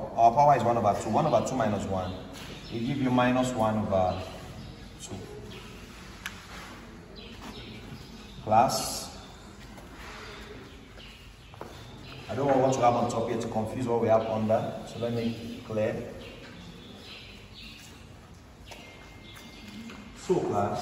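A young man explains calmly and clearly, close by.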